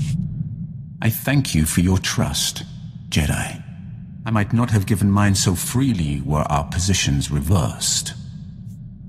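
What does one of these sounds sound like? A man speaks calmly in a deep voice, close by.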